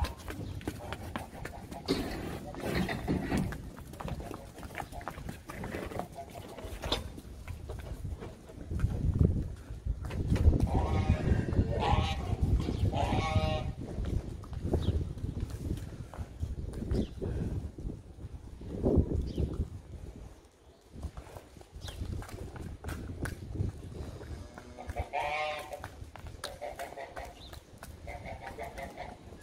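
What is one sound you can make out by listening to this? Cattle hooves clop and scuff on wet paving.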